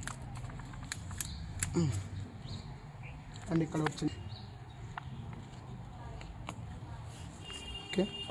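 Scissors snip through a plant stem.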